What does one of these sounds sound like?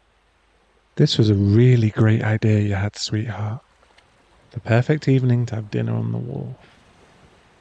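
A young man speaks softly and close to the microphone.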